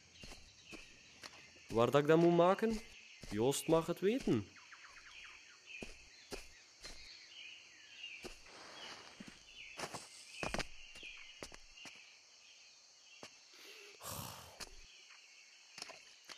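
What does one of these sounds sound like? Footsteps crunch on soft forest ground.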